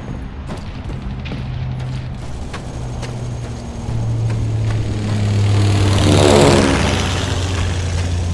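A half-track vehicle's engine rumbles and drones.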